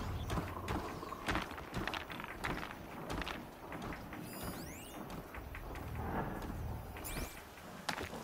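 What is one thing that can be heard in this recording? A cable hums as a character slides down a zipline.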